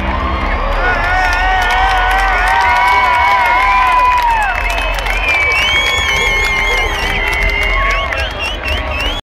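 A large outdoor crowd sings along loudly and unevenly.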